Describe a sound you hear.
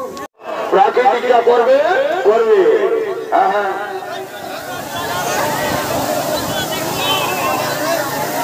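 A man sings loudly over distorted outdoor loudspeakers with music.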